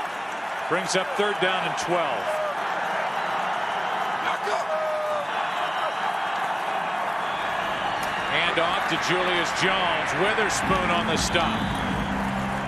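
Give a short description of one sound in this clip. A large stadium crowd roars steadily outdoors, swelling louder toward the end.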